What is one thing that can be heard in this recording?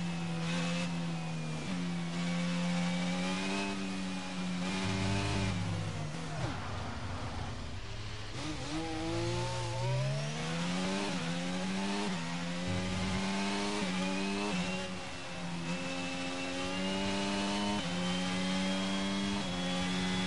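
A racing car engine whines loudly, its pitch rising and dropping sharply with each gear change.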